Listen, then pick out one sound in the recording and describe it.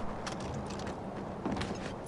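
A snowmobile engine runs.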